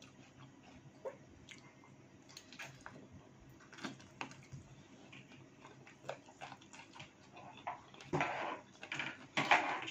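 Food crunches and rustles as a woman picks at it by hand.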